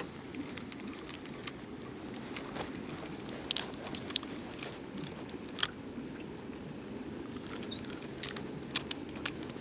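Small clicks and taps come from hands handling a fishing rod.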